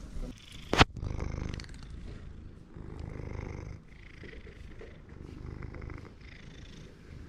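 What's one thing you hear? A cat purrs loudly right up close.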